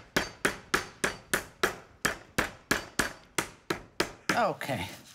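Rapid, even thuds pound meat flat on a wooden board.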